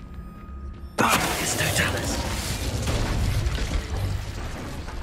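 A magic spell bursts with a loud rushing blast.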